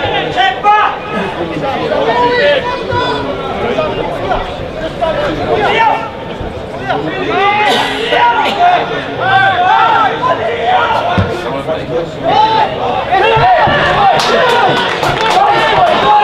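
A small crowd of spectators murmurs and cheers in the distance.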